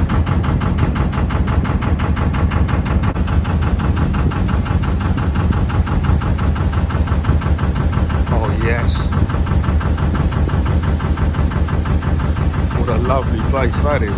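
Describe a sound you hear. A boat engine chugs steadily close by.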